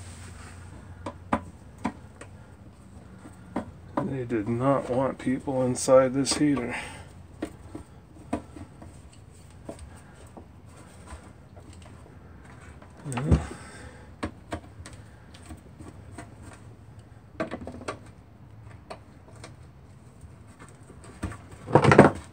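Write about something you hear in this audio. Hands knock and click against a metal box.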